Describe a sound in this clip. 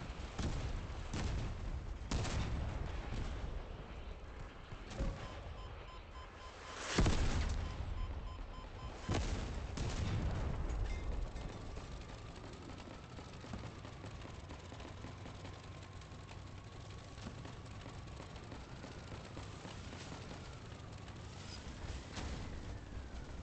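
A mechanical walker clanks and whirs as it moves.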